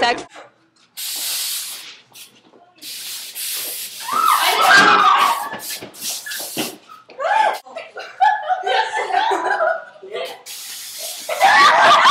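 A girl shouts and laughs with animation.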